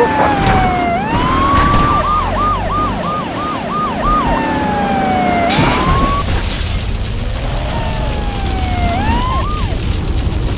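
A police siren wails nearby.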